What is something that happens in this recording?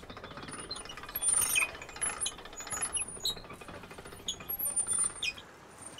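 A mangle's wooden rollers creak and rumble as they turn.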